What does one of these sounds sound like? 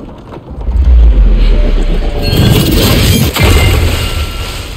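A heavy body crashes and splashes into water.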